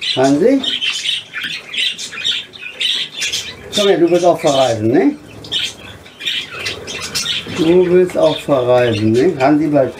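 Budgerigars chirp and chatter close by.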